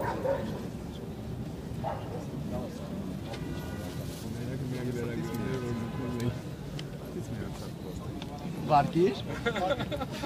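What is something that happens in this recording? Several men talk at once nearby, outdoors.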